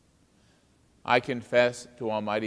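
An older man speaks calmly and solemnly into a microphone in a reverberant room.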